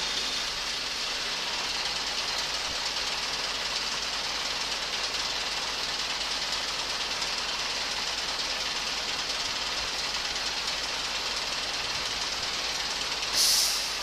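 A truck's crane motor hums and whines steadily close by.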